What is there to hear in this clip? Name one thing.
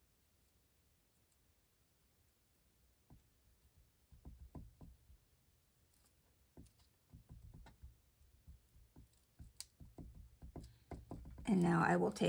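A marker scratches lightly on paper.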